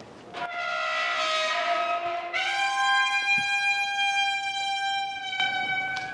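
A metal gate squeals loudly on its hinges as it swings open.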